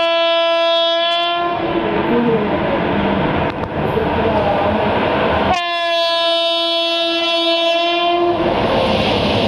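A locomotive horn blares loudly in long blasts.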